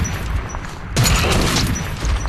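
A monster snarls and roars up close.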